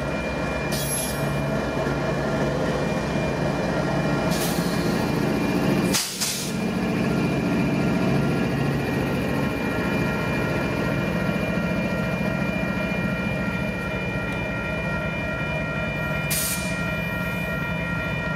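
A diesel locomotive engine rumbles loudly close by.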